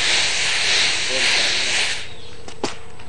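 Rice grains rustle and hiss as they are shaken.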